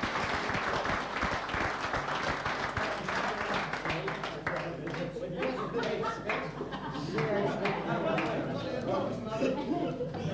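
A crowd of men chatter and cheer.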